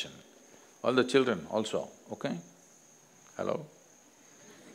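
An elderly man speaks calmly and slowly into a nearby microphone.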